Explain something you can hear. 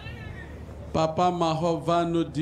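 A man sings loudly and with feeling.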